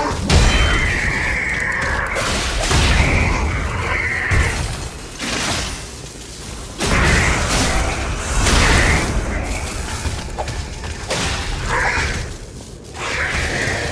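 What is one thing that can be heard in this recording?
Heavy metal limbs thud and scrape on stone.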